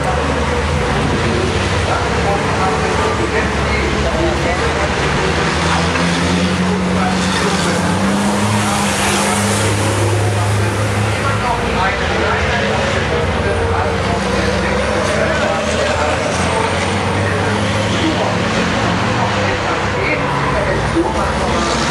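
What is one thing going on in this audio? A racing truck's engine roars as it drives past on a track.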